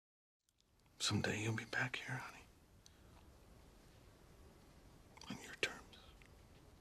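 A man speaks softly and gently, close by.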